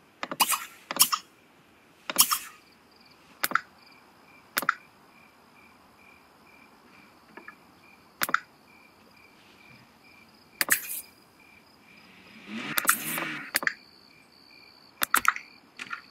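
Short clicks and chimes from a game's controls sound now and then.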